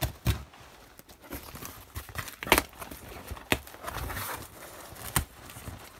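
Cardboard flaps rustle and scrape as a box is opened.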